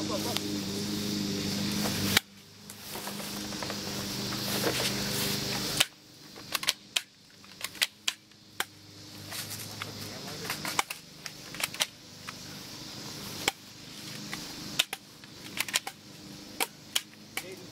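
A toy gun fires sharp pops in quick bursts outdoors.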